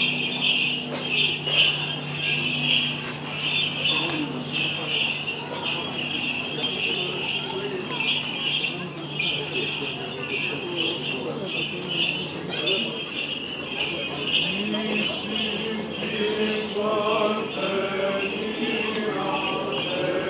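A crowd of people murmurs and talks quietly outdoors.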